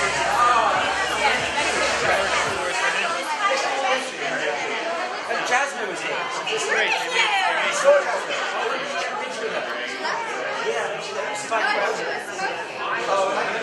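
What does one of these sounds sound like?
Several young women chat and laugh with animation close by.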